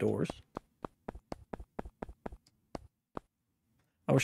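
Boots thud in quick footsteps on a hard floor.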